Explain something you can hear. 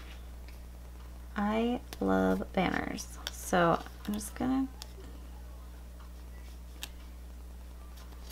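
Fingers rub and press a sticker onto paper.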